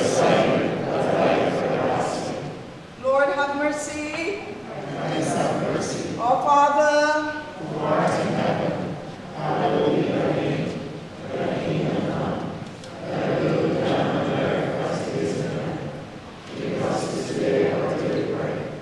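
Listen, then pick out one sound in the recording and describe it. A middle-aged woman recites prayers aloud in an echoing hall.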